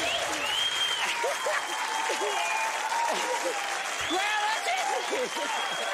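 A crowd claps and cheers in a large hall.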